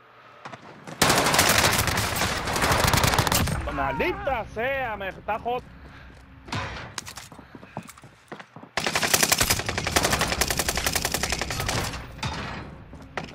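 A machine gun fires rapid, loud bursts.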